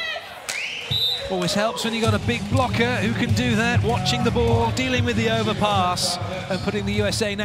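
A large indoor crowd cheers and claps loudly.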